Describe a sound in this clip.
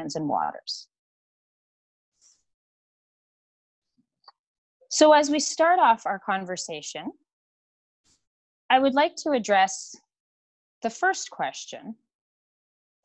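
A woman speaks calmly through an online call, in short phrases with pauses.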